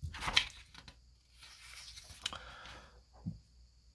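A sheet of paper rustles as it is turned over.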